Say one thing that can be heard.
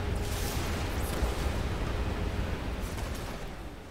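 Footsteps thud on metal stairs.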